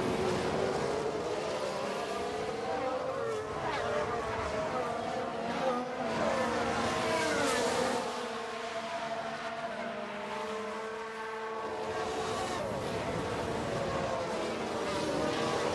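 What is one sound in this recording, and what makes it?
Racing car engines whine at high revs and shift pitch as the cars speed past.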